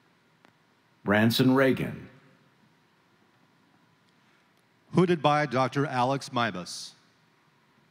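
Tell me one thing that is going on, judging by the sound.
A man reads out over a loudspeaker in a large echoing hall.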